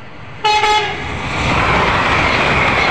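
A second high-speed train roars past close by.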